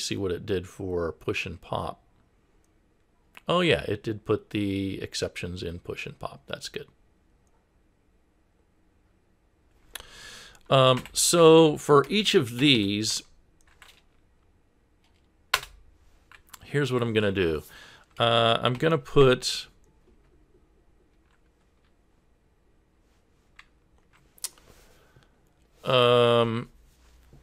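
A man speaks calmly into a close microphone, explaining in bursts with pauses.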